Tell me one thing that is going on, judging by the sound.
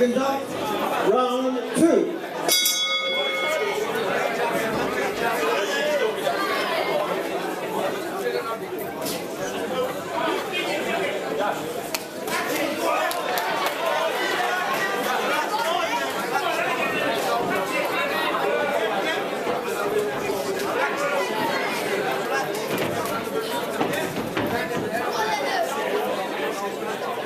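A crowd chatters and calls out throughout a large echoing hall.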